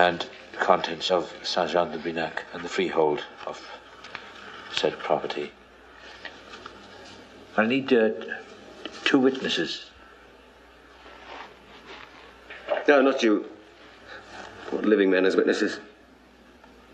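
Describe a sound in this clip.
A young man speaks quietly and emotionally, close by.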